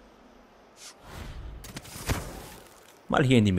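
A blade swooshes quickly through the air.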